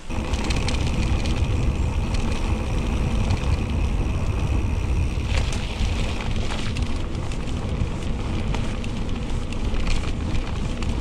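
Wind rumbles loudly past the rider.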